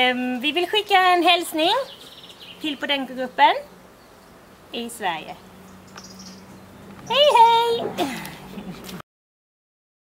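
A woman talks cheerfully and animatedly close by.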